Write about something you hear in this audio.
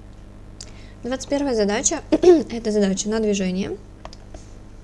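A young woman speaks calmly into a close microphone.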